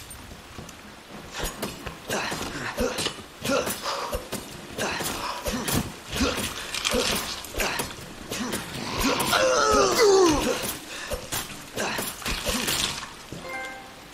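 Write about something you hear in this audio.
Blows thud and scuffle in a struggle.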